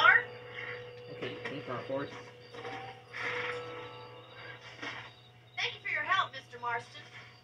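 Music and sound effects from a video game play through television speakers.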